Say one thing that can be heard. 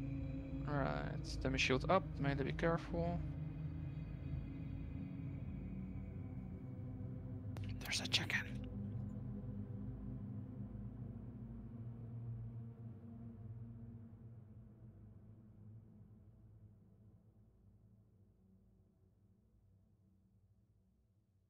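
A low rumbling drone slowly fades away.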